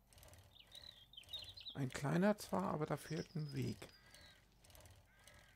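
A bicycle rolls along a paved road.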